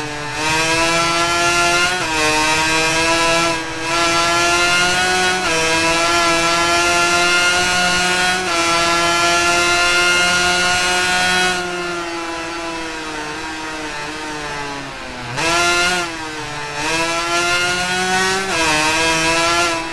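A 250cc two-stroke racing motorcycle engine screams at high revs as it accelerates and shifts up through the gears.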